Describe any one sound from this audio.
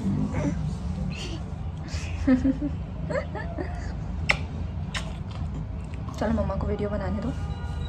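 A young boy speaks and giggles close by.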